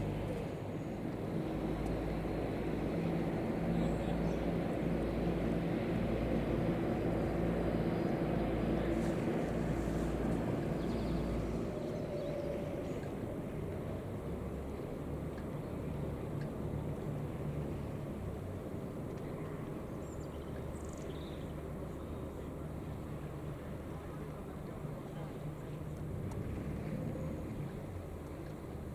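A boat engine hums steadily across the water.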